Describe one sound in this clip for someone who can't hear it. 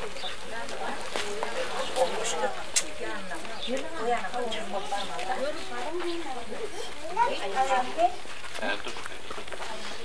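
Several women talk and call out nearby, outdoors.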